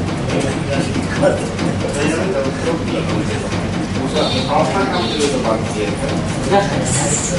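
Several men talk over one another.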